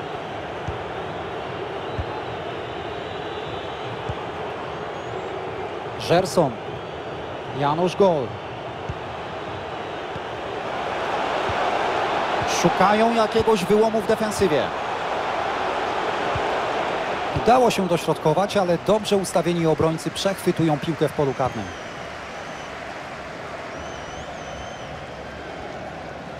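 A large stadium crowd murmurs and roars.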